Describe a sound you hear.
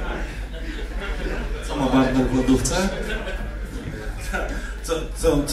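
Men laugh heartily nearby.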